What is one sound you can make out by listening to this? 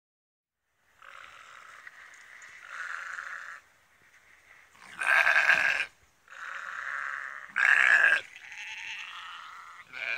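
Sheep bleat loudly nearby.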